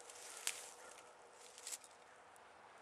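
Dry sticks rustle and clatter as a man handles them.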